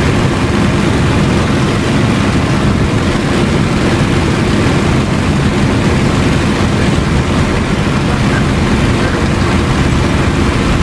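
A propeller plane's engine roars steadily from inside the cockpit.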